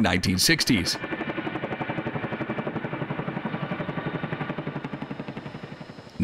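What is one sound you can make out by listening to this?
Helicopter rotors thump rapidly and steadily.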